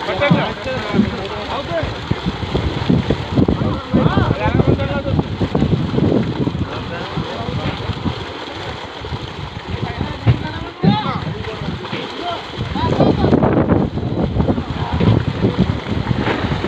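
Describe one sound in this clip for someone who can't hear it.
Several men shout and call out to each other outdoors.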